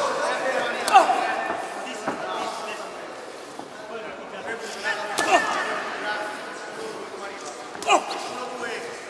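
Gloved punches land with sharp thuds.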